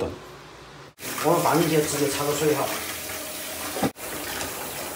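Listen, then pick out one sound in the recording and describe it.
Water runs from a tap into a metal pot.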